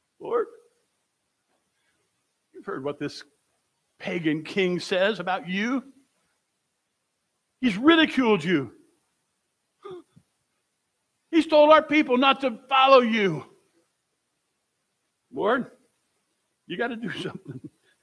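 An elderly man preaches with animation through a microphone, in short bursts with pauses.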